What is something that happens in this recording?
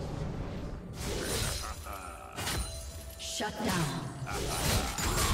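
Magic blasts and weapon hits crash and whoosh in a fast fight.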